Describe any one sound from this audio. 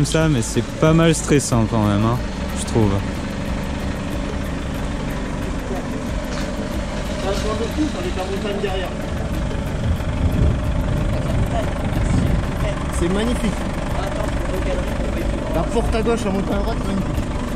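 A diesel engine idles steadily nearby.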